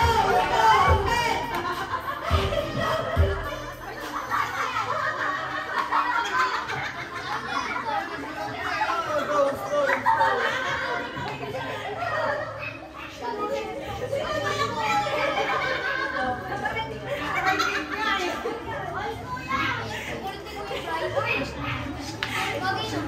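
A crowd of men and women laughs and cheers.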